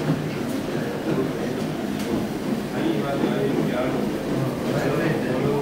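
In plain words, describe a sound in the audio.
Water swishes under the spinning pad of a floor polishing machine.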